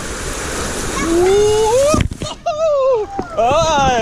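Water splashes loudly into a pool.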